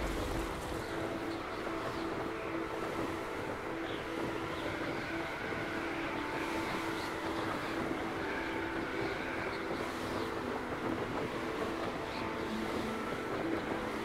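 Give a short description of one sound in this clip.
Wind rushes steadily past during flight.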